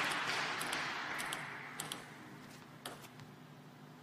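A table tennis ball bounces on a table.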